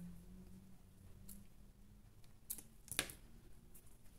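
Scissors snip through soft foam.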